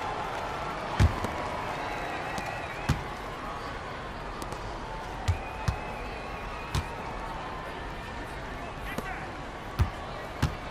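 A basketball bounces on a hardwood court in quick thumps.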